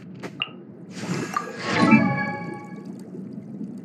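A bright chime sounds as a game menu item is selected.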